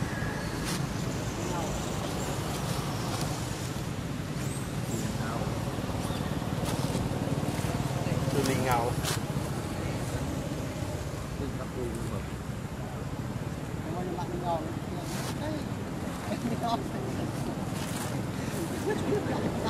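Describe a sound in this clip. A young monkey gives short high squeaks close by.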